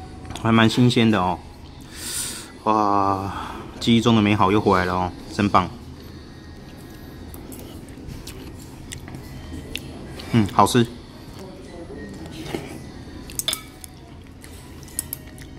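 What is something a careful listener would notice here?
Chopsticks and a spoon clink lightly against a bowl.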